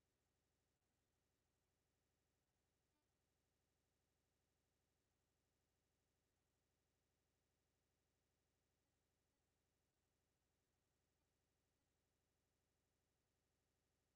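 A clock ticks steadily and softly.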